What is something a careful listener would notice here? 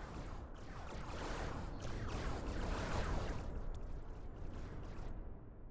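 Laser blasts fire in rapid bursts.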